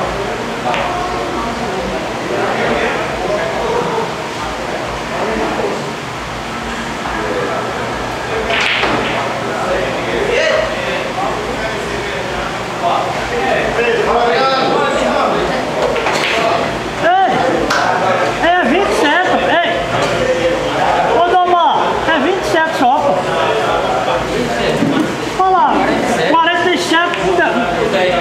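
Several men talk and chatter nearby.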